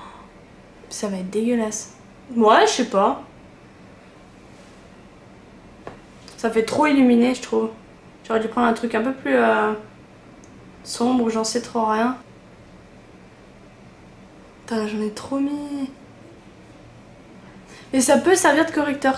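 A young woman talks calmly and close by, in short bursts.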